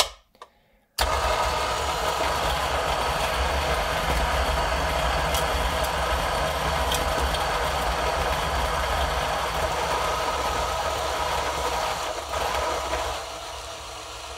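An electric coffee grinder whirs steadily as it grinds beans.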